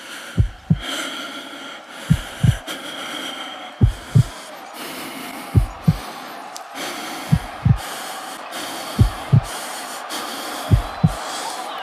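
A small dog patters along a leafy path outdoors.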